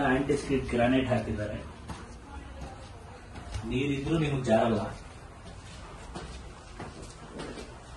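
Footsteps climb a tiled staircase.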